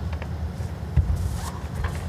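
A bowl lands on a carpet with a soft thud.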